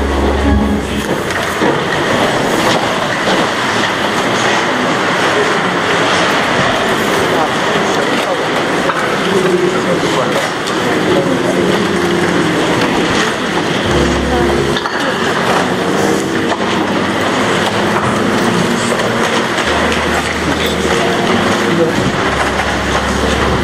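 A congregation sings together.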